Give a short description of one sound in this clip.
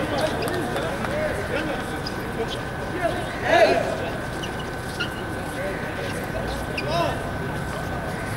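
Children shout and call to each other in the distance outdoors.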